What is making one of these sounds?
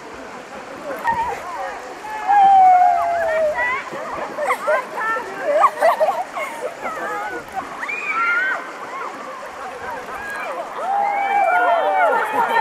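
Young girls shout and squeal while floating in a river.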